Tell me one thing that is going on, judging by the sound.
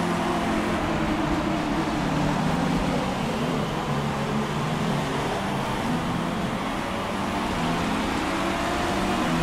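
A racing car engine roars steadily at high speed, its pitch shifting as it changes gear.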